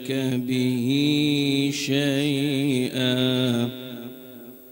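A young man recites in a long, melodic chant through a microphone.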